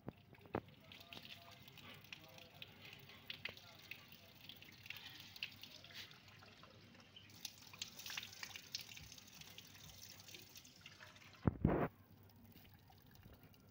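Water splashes from a tap onto the ground.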